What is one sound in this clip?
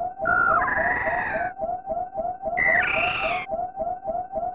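A creature lets out shrill, warbling screeches.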